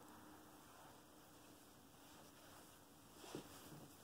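Footsteps shuffle softly across a carpeted floor.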